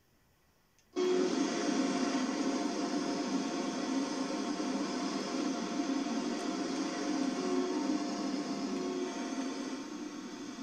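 A train rumbles and roars steadily past close by.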